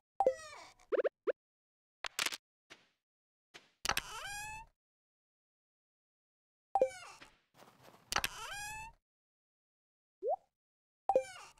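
Short, bright game sound effects chime and pop again and again.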